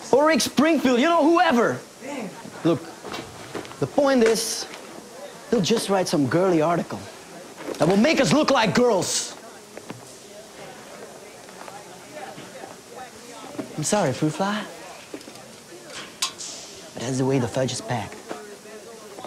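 A young man speaks with emotion, close by.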